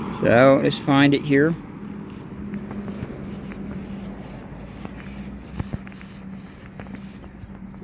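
Grass rustles as a probe is pushed into the lawn.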